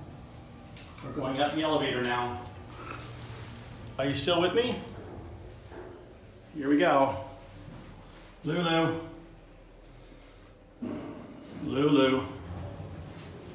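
A middle-aged man speaks close by in short bursts.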